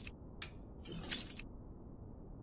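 Gear rattles briefly as an item is equipped.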